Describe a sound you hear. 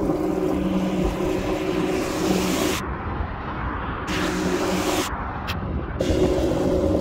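Cars swish past on a wet road.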